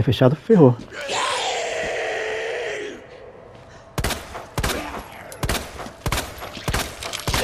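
A zombie groans and snarls.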